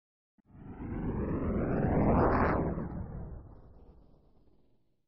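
A pickup truck drives past close by, its engine rising and then fading away.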